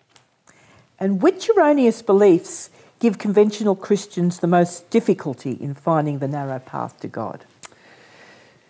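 A middle-aged woman reads out a question calmly, close to a microphone.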